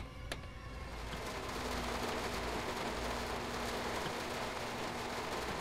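Heavy rain hisses against the windscreen.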